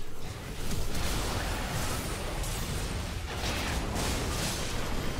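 Magic spells burst and weapons clash in a busy game fight.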